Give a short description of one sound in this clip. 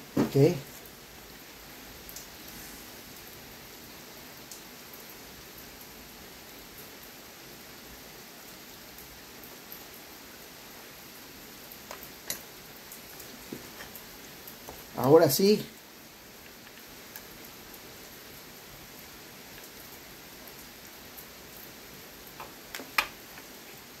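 Small metal engine parts click and rattle as they are handled.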